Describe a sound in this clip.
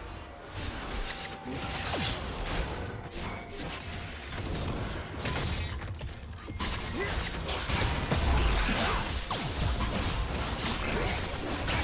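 Magic blasts whoosh and crackle.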